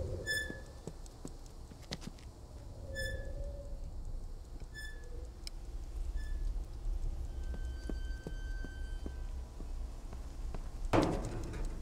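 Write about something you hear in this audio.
An alarm clock clatters and knocks as it hops across a hard floor.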